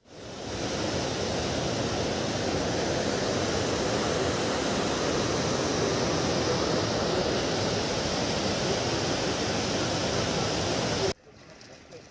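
Water rushes and roars loudly.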